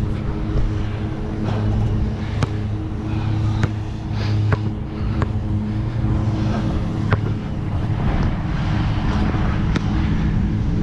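A basketball clangs off a metal rim.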